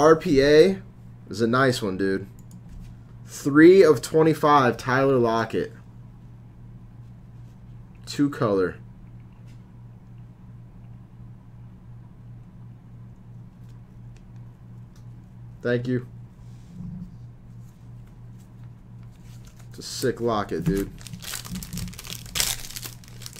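Foil wrappers crinkle as hands handle them.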